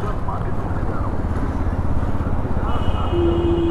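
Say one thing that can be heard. A motorcycle engine passes close by.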